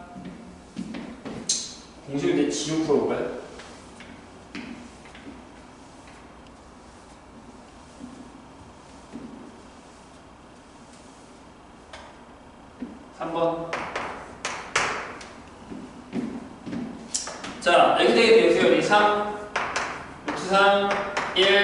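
A young man lectures calmly.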